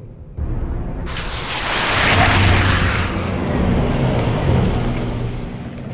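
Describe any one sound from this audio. A car's tyres splash through water on the road.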